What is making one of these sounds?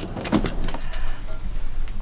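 Metal tongs clink against a stove.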